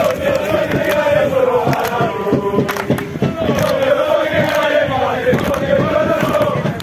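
A group of young men chant and shout loudly together outdoors.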